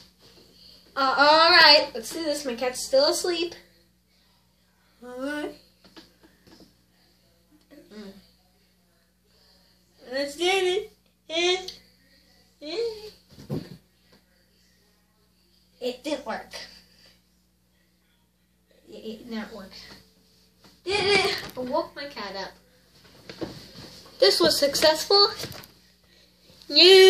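A boy talks and sings loudly and playfully, close by.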